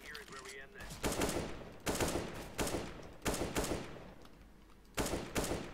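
A rifle fires sharp shots in quick bursts.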